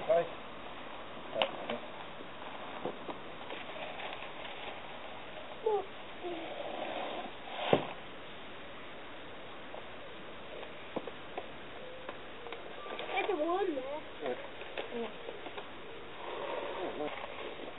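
Soil scrapes and crunches as hands and a tool dig into it.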